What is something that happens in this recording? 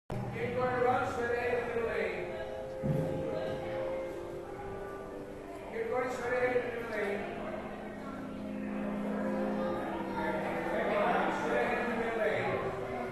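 A group of voices sings slow, drawn-out notes in a large echoing hall.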